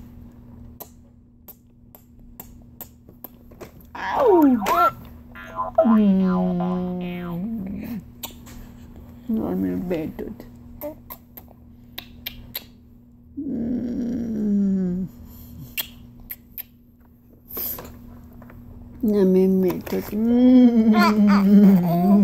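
A woman kisses a baby's cheek with soft smacking sounds.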